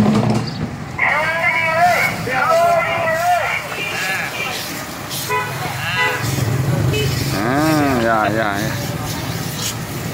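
A brush scrubs against a wet tyre.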